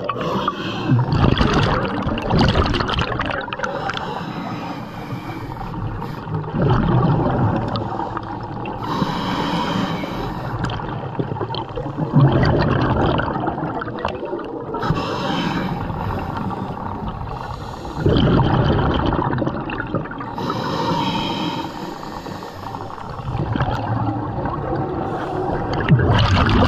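A diver breathes out through a regulator in loud bursts of bubbles underwater.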